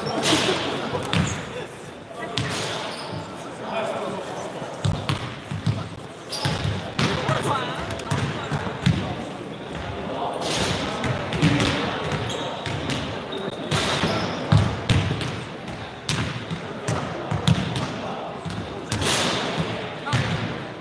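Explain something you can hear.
A crowd of young people chatters in the background.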